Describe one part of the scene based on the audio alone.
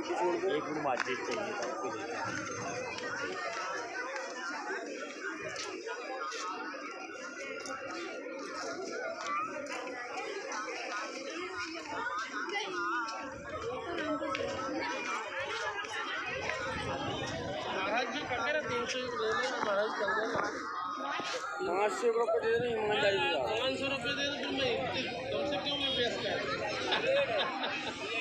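Several women chant together close by, outdoors.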